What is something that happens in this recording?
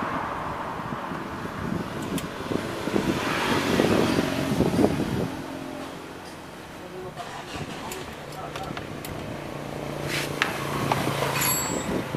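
A screwdriver clicks and scrapes against a screw.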